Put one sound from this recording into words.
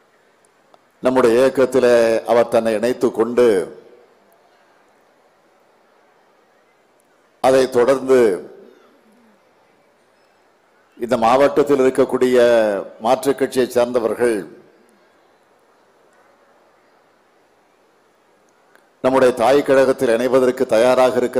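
A middle-aged man speaks forcefully into a microphone over loudspeakers, pausing between phrases.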